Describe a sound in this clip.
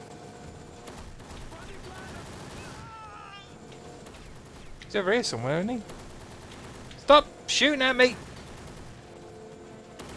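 A rifle fires short bursts.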